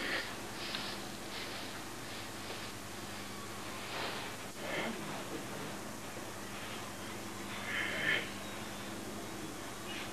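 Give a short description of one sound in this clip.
Bare feet shuffle and scuff on a hard floor.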